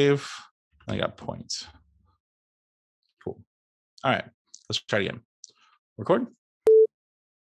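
A man speaks casually into a nearby microphone.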